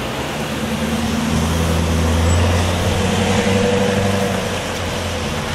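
A van's engine rumbles close by.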